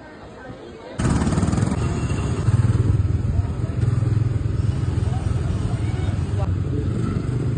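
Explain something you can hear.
A bumper car hums and rumbles as it drives.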